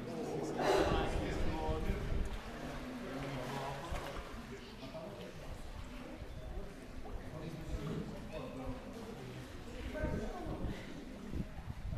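Water splashes and laps as people swim.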